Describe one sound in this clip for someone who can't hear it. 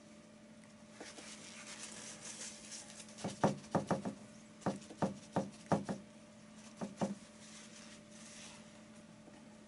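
A paintbrush dabs and scrapes softly on canvas.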